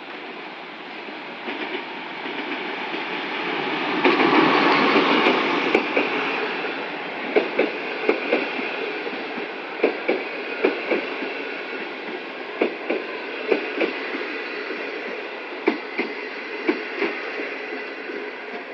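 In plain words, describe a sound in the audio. A train pulls into the station with a loud rushing rumble.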